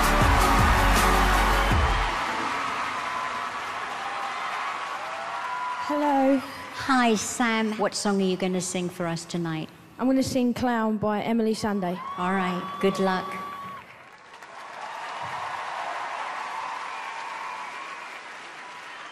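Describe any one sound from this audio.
An audience cheers and applauds in a large hall.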